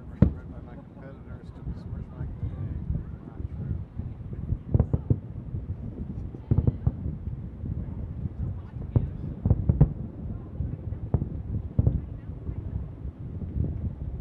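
Fireworks crackle faintly.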